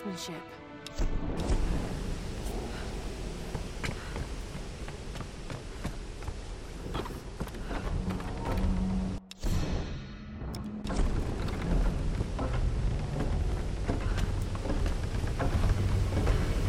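Footsteps crunch and scuff on dirt and wooden boards.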